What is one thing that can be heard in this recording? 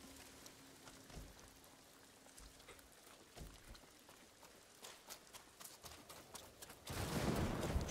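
Footsteps rustle through grass and bushes.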